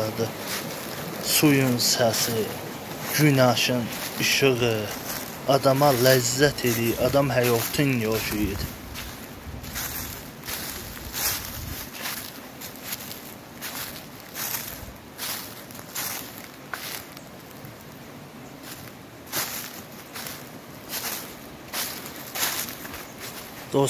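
Dry leaves crunch underfoot with each step.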